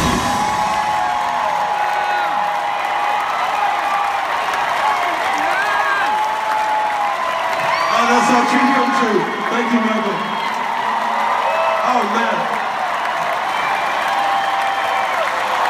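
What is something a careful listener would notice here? A rock band plays loudly through big loudspeakers, echoing across a huge open arena.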